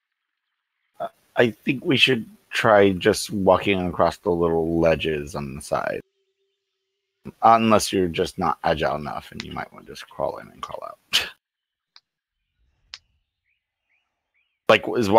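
A man speaks with animation through a headset microphone in an online call.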